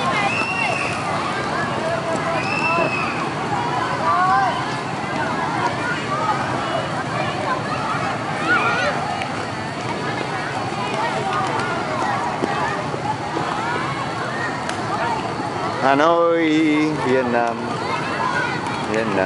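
A busy crowd of children and adults chatters and shouts outdoors.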